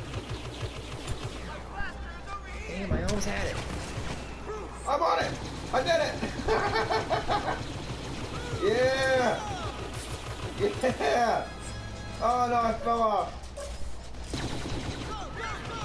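Laser blasters fire in rapid bursts.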